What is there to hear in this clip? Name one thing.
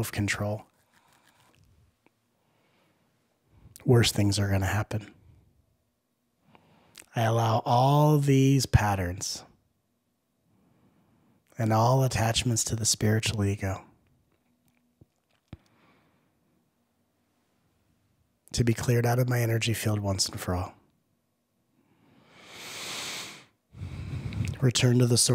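A man speaks calmly and closely into a microphone, with pauses between phrases.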